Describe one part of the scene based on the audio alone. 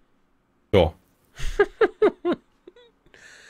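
A man laughs heartily over a microphone.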